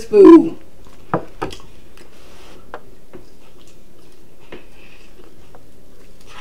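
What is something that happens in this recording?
A man chews food with soft wet smacks.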